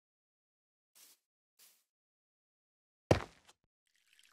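Stone blocks are set down with short knocks.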